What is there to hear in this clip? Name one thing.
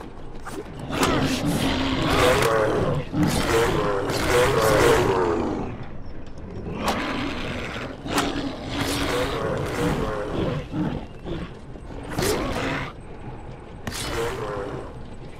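A creature snarls and growls loudly.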